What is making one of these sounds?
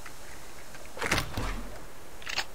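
A wooden crate creaks open.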